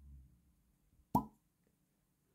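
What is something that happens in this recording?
A cork squeaks and pops out of a bottle.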